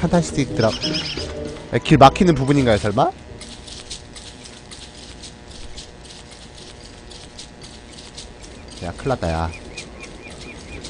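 Quick footsteps patter softly on grass.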